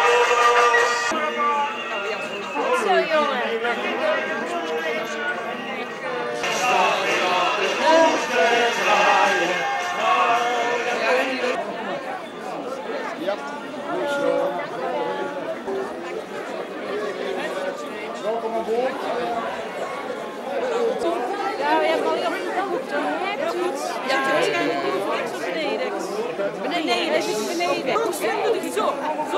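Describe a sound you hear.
A crowd of men and women chatter all around indoors.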